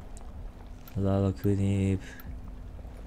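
A short menu chime sounds.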